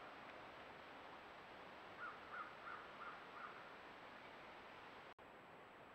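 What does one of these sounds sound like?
An animal steps softly through dry brush and twigs.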